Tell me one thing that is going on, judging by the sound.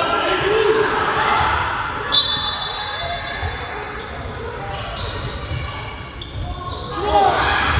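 Sneakers squeak sharply on a wooden court floor.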